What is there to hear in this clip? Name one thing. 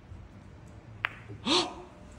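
Pool balls clack together.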